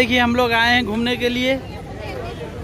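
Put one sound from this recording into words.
A woman speaks loudly close by.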